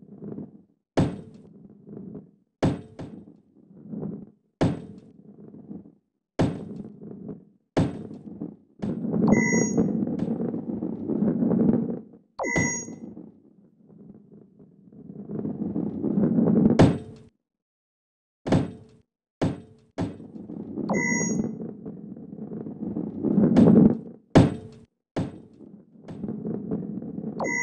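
A heavy ball rolls and rumbles over a hard surface.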